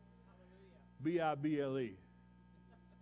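An older man speaks loudly through a microphone.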